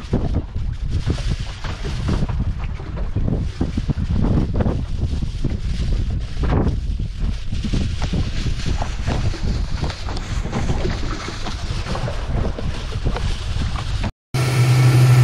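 Wind buffets loudly, as if outdoors.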